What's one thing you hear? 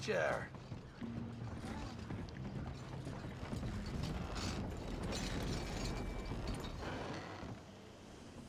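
Horse hooves clop on a wooden floor.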